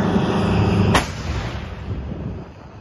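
A self-propelled howitzer fires with a heavy boom.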